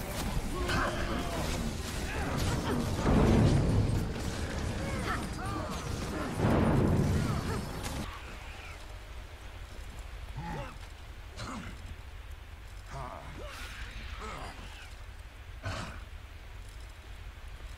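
Weapons clang and thud in combat.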